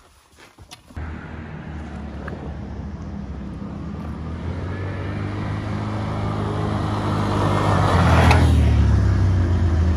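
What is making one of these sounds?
A quad bike engine roars, drawing nearer and getting louder.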